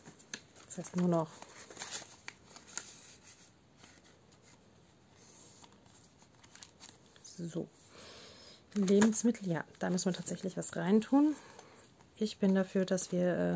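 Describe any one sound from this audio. Plastic sleeves rustle and crinkle as pages are turned.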